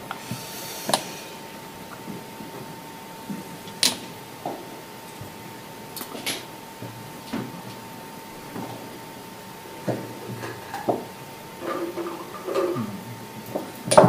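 Plastic checkers click and clack on a wooden board.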